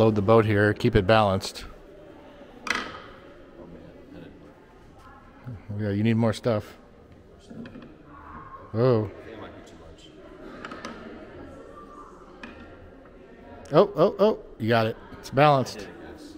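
Wooden toy blocks knock and clack as they are picked up and set down.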